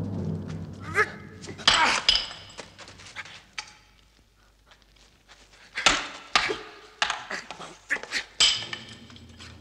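Wooden staffs clack and strike together in a fight.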